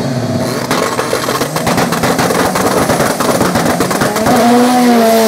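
Race car engines rev and pop loudly at close range.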